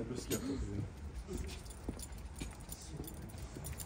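A small dog's claws patter on pavement.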